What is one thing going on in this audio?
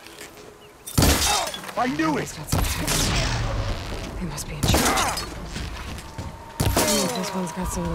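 An energy blast bursts with a loud crack.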